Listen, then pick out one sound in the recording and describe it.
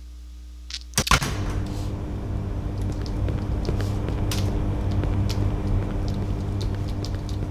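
A low ambient hum drones steadily.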